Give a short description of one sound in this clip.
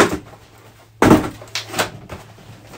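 A toy car thumps down onto a table.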